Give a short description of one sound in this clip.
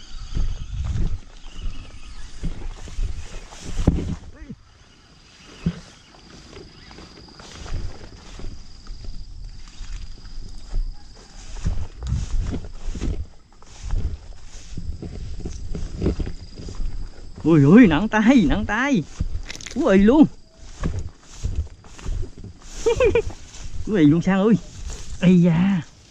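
Footsteps swish and rustle through tall grass.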